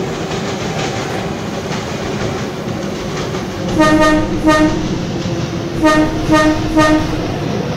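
An electric commuter train runs along the rails with a steady rumble.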